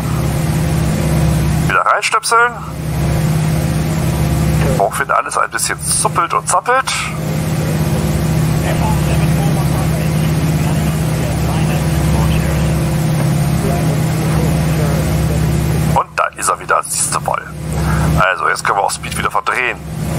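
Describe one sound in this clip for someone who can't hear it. A light aircraft engine drones steadily.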